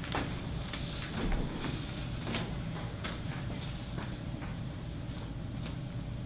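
Paper rustles as a man handles sheets of paper.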